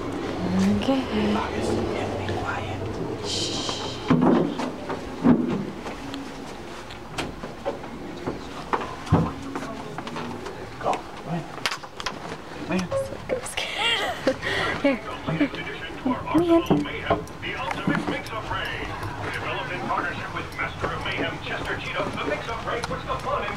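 A young child babbles and chatters close by.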